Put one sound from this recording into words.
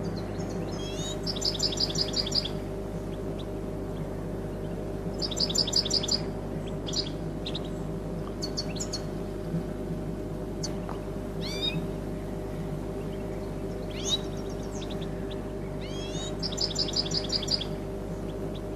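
A small songbird sings bright, quick trilling phrases.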